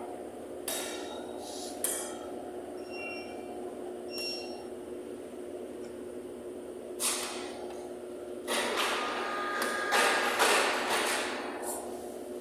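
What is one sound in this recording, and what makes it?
A metal spatula scrapes and taps against a cold metal plate.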